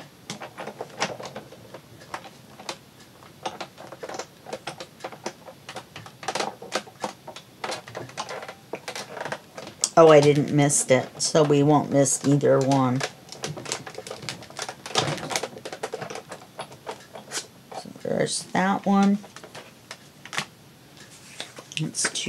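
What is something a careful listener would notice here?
Plastic plates clack as they are set down and slid.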